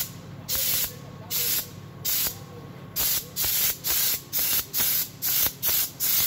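Compressed air hisses from an air gun in short, sharp bursts that come faster and faster.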